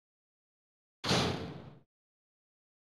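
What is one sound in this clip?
A heavy metal door opens.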